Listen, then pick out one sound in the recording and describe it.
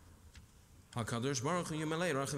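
A man sings a prayer loudly through a microphone.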